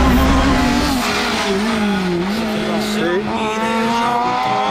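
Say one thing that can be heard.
A rally car engine revs and races past outdoors, fading away.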